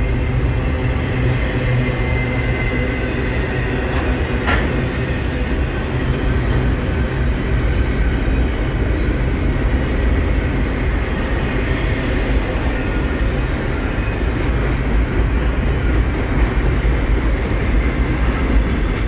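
A long freight train rumbles and clatters steadily past close by.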